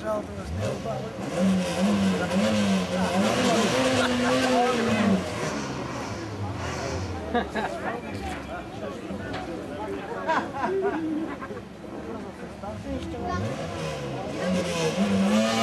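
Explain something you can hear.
A crowd of men and women chatters and murmurs outdoors.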